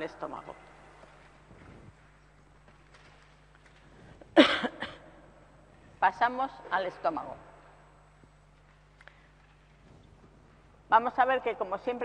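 An older woman speaks calmly into a microphone, in short bursts with pauses.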